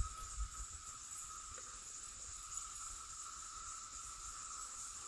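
Wind rustles through leafy trees outdoors.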